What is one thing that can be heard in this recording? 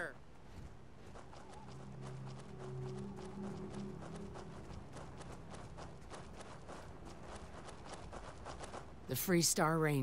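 A man's footsteps thud quickly on dry ground.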